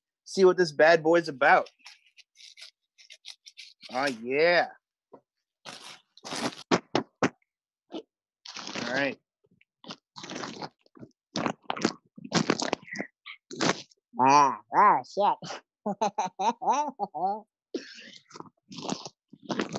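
Wrapping paper crinkles and rustles.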